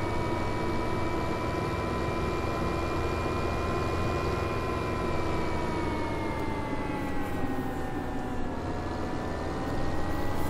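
A tractor engine drones steadily, its pitch dipping slightly as it slows.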